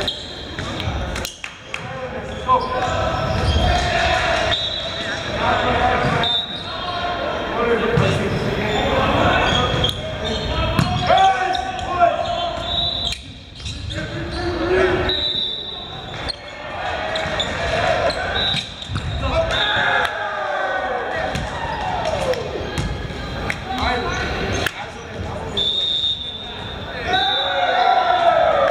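Young men call out and chatter in a large echoing gym.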